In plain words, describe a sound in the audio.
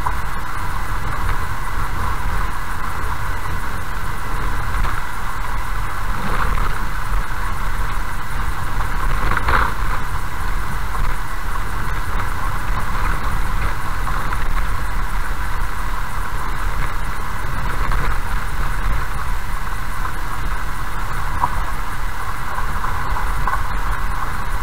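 Loose gravel rattles and crunches under the tyres.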